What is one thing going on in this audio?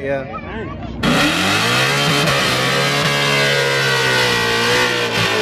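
A car engine idles and revs nearby.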